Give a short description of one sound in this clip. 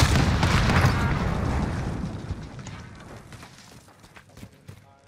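A loud explosion booms and its rumble slowly fades.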